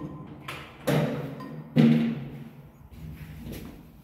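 A metal elevator door slides and bangs open.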